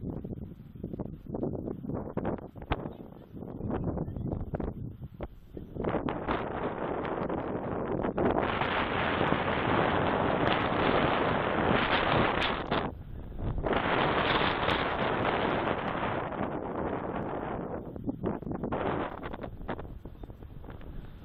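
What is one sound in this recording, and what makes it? Wind gusts and buffets loudly outdoors.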